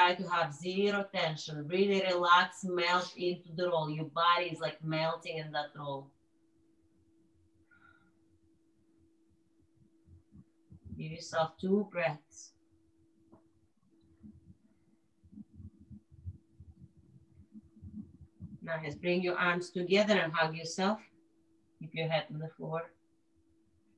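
A woman talks calmly, giving instructions in short bursts.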